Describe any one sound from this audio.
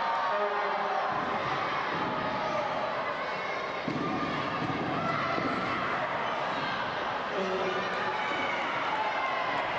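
Wrestlers' bodies thud onto a ring mat.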